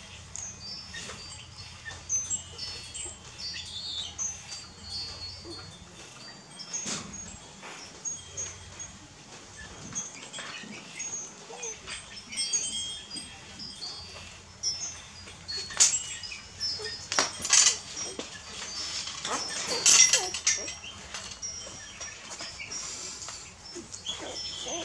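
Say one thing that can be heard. Puppies suckle with soft wet smacking sounds.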